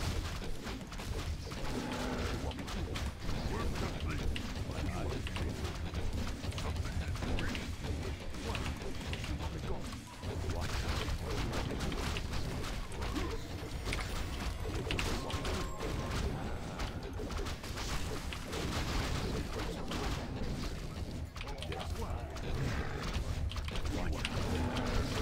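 Swords clash and spells burst in a game battle.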